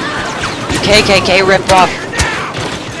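Blaster gunfire cracks in quick bursts.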